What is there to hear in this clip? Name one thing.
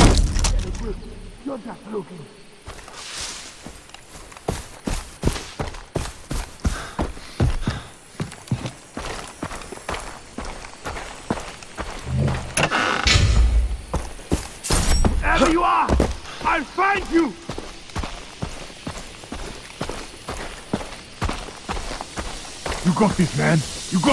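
Footsteps rustle through grass and crunch on a dirt path.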